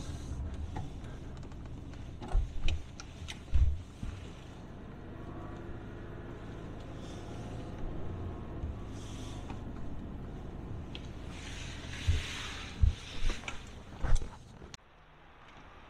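A car drives along a paved road, heard from inside.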